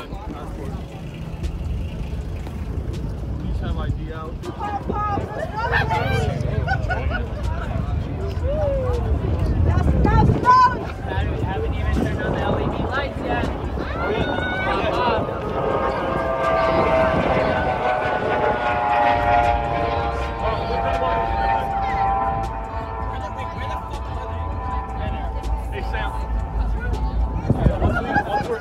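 A crowd of young people chatters and calls out nearby outdoors.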